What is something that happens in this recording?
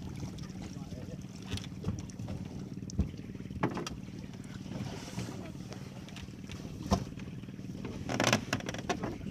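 A boat engine hums steadily.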